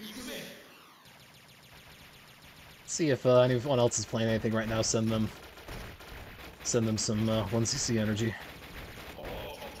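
Rapid shots and small explosions crackle.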